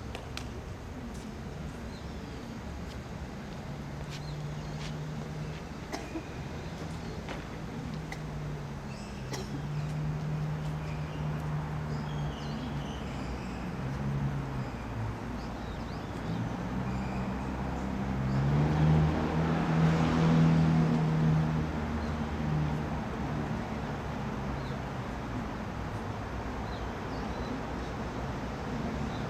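A tennis ball bounces on a hard court at a distance.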